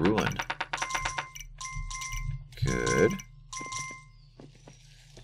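Coins chime with bright ringing tones.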